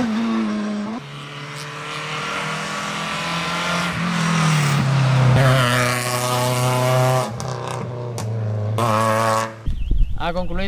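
A car engine revs hard as it accelerates by.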